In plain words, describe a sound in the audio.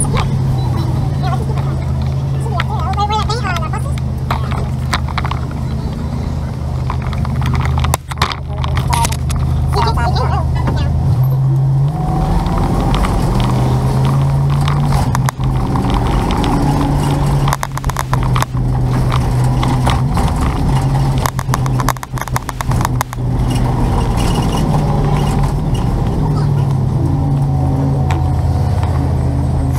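A motorcycle engine hums steadily close by, rising in pitch as it picks up speed.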